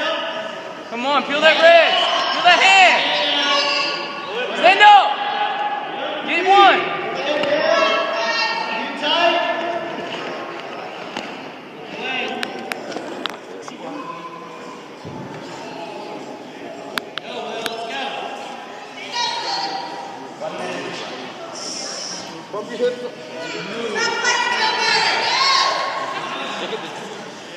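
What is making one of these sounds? A man shouts encouragement loudly in an echoing hall.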